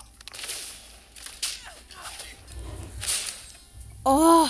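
Cartoon blasts and hits burst out in quick bursts during a fight.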